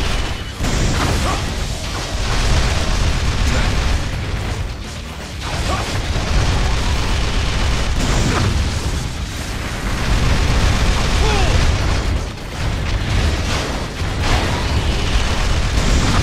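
Heavy machinery whirs and clanks.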